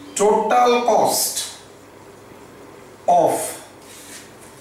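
A man speaks in short phrases, explaining calmly.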